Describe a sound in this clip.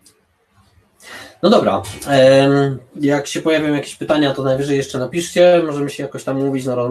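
A man speaks calmly through an online call microphone.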